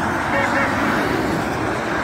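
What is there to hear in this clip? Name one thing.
A lorry rumbles by close below.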